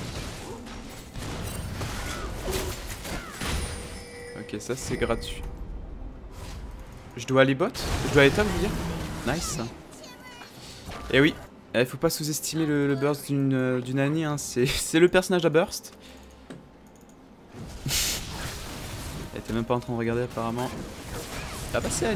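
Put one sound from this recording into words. Magic spells whoosh and crackle in a video game fight.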